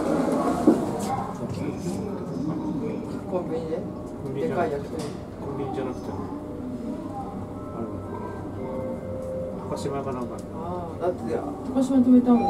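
An elevator hums as it rides.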